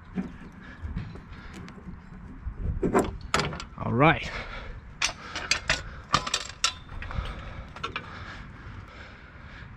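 Metal parts clink and rattle as they are handled.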